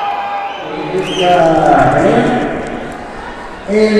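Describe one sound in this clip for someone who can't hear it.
A man announces into a microphone over loudspeakers.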